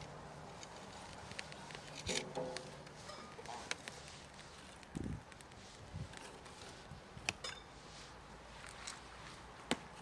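Dry sticks clatter and snap as they are piled up.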